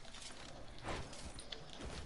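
A pickaxe strikes metal with sharp clangs.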